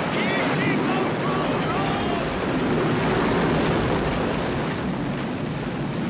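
A crowd of men shouts and struggles in panic close by.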